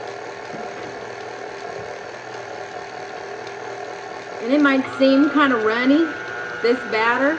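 A stand mixer whirs steadily as it beats batter.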